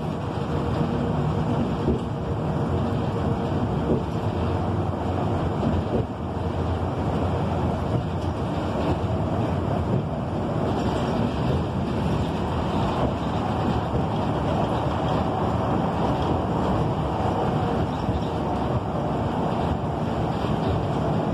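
A vehicle rumbles steadily as it drives.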